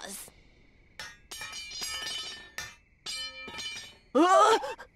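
Metal blades scrape and ring with bright, sharp clinks.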